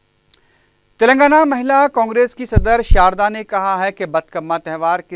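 A middle-aged man speaks calmly to the listener.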